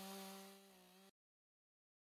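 A chainsaw engine idles.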